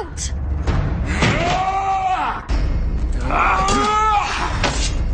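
A man roars loudly as he charges.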